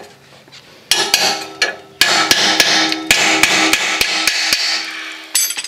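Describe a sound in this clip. A ratchet wrench clicks rapidly against a bolt.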